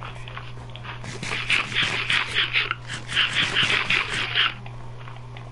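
Crunchy chewing sounds repeat in quick bursts.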